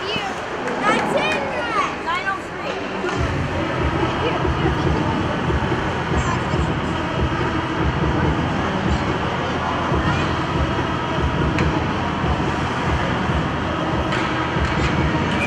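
Ice skates scrape and carve across the ice in a large echoing rink.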